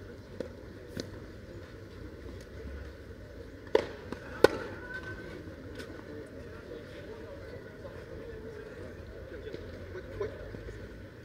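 Tennis balls are struck with rackets in a rally, with sharp pops.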